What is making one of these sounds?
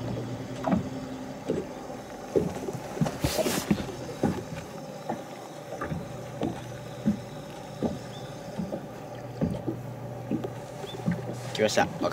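A fishing reel clicks as line is wound in.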